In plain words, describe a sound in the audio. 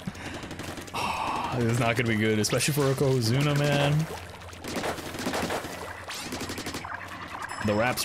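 Game ink blasters splat and squirt.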